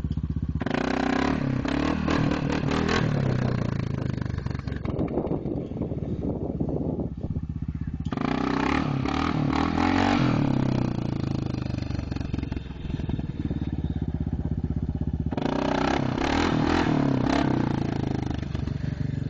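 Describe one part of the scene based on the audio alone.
A quad bike engine revs and putters nearby, rising and falling as it circles.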